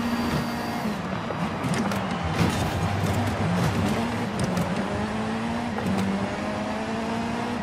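Gravel crackles and rattles under the car's tyres.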